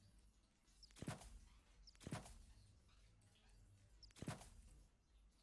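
Soft game menu clicks sound a few times.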